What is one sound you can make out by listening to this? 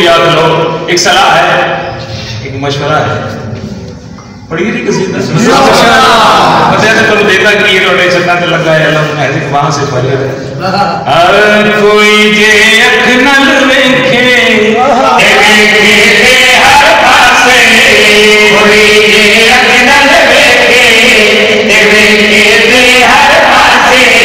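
A man recites passionately through a microphone and loudspeaker, his voice echoing.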